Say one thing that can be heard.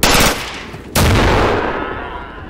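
A blast goes off.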